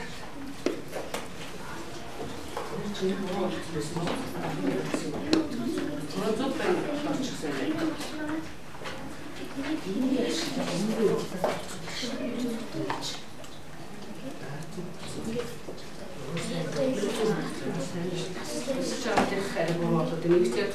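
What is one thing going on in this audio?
Children talk and chatter nearby in a room.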